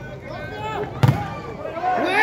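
A volleyball is struck hard.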